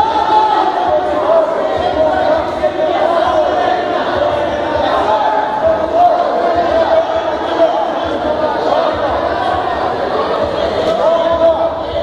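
A crowd of men and women chatters and calls out throughout a large echoing hall.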